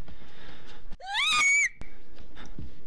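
A young woman shrieks in a high voice.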